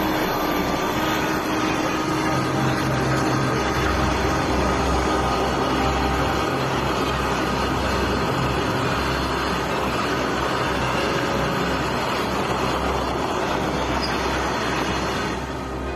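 Freight wagons roll past with a steady rumble and clatter of wheels on rails.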